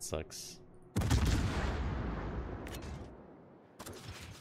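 Ship guns fire with a deep boom that rumbles away.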